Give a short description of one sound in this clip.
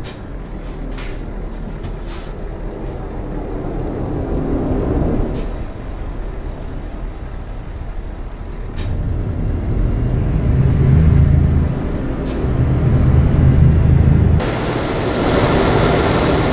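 A truck's tyres hum on the road.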